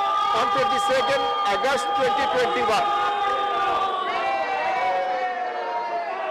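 A crowd of people shouts in a large echoing hall.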